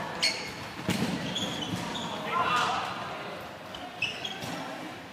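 A ball thuds against the court and walls.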